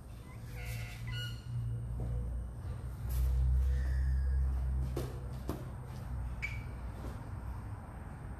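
A rubber exercise ball rolls and creaks on a hard floor.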